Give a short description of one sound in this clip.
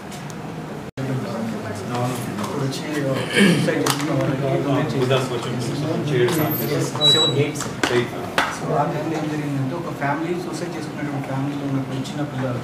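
Several men talk with one another nearby.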